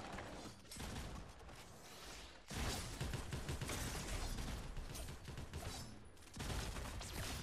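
Rapid gunshots crack from a video game.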